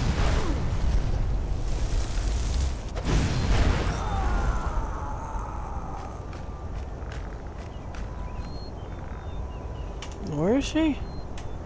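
A fire spell whooshes and crackles in a hand.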